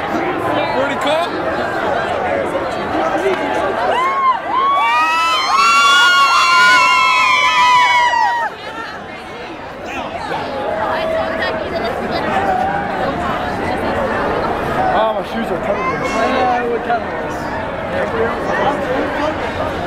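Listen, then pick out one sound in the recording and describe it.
A crowd talks and cheers all around outdoors.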